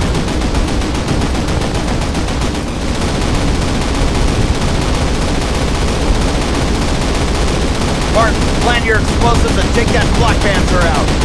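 Distant gunfire and explosions rumble steadily.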